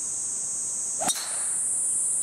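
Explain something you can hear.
A second golf club strikes a ball with a sharp crack.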